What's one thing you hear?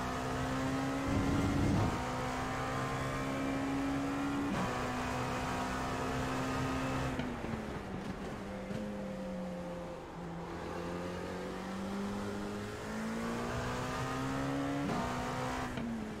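A racing car engine roars steadily, rising in pitch and dropping sharply with each gear change.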